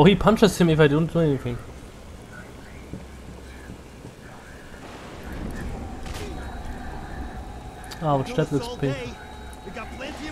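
A man speaks harshly and threateningly up close.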